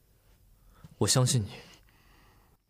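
A young man speaks a short phrase close by.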